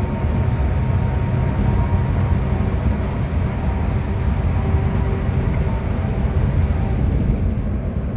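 Tyres roar on the road.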